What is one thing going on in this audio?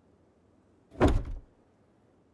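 A wooden box thuds heavily as it is set down.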